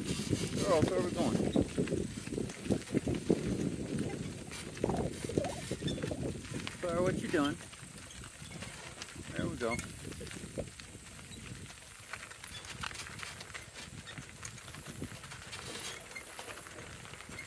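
Cart wheels crunch and rattle over gravel.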